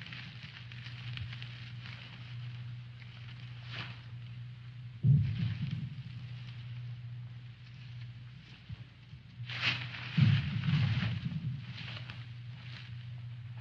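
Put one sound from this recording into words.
Brush rustles and twigs crackle as a man crawls through the undergrowth.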